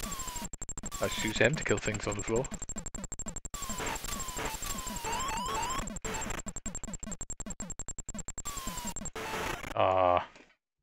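Electronic game sound effects buzz and chirp rapidly.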